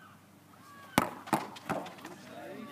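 A football is kicked hard with a sharp thud.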